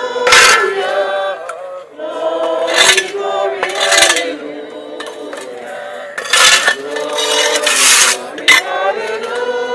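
Shovels scrape and toss sand and gravel.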